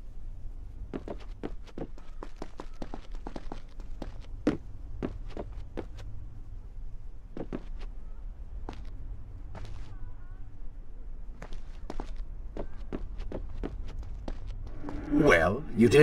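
Quick footsteps run across hollow wooden boards.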